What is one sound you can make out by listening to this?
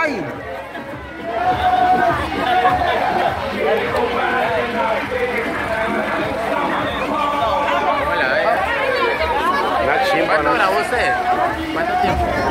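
A crowd of people chatters and shouts nearby outdoors.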